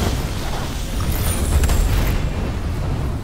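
A fiery spell bursts with a roaring whoosh.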